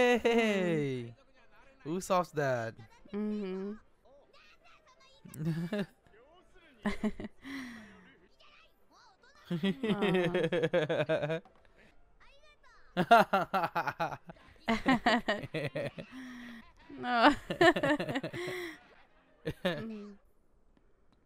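A young man laughs into a microphone close by.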